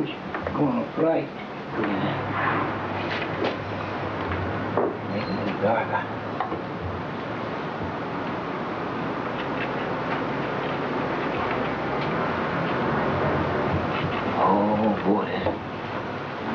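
An elderly man speaks casually nearby.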